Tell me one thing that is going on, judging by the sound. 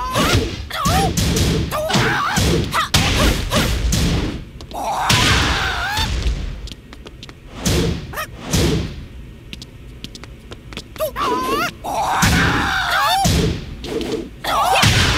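Punches and kicks land with sharp smacking impacts, over and over.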